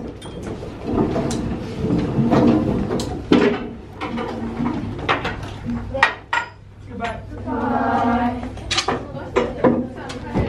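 Students chatter and move about.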